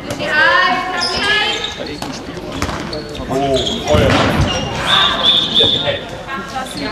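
Young women shout to each other in a large echoing sports hall.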